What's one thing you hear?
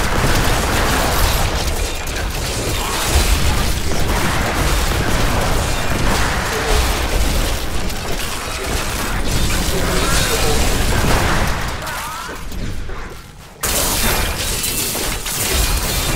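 Game spell effects crash and crackle in a dense, noisy battle.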